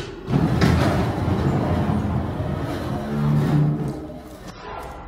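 A heavy metal vault door rumbles and grinds open.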